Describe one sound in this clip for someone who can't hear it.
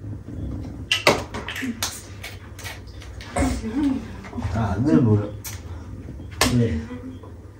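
A hand slaps a body with sharp smacks.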